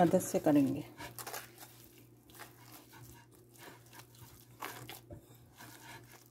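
Hands squish and knead soft dough.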